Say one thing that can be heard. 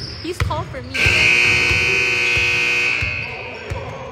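A referee's whistle blows long and shrill.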